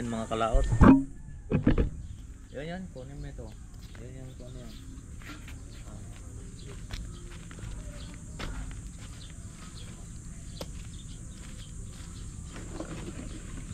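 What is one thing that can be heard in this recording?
Footsteps crunch on dry debris.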